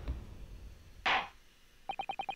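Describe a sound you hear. A wooden gavel bangs once.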